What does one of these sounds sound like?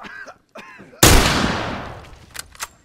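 A gunshot rings out loudly and echoes.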